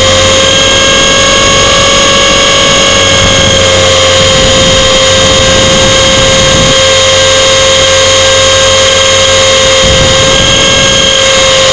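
Drone propellers whine loudly and steadily, close by.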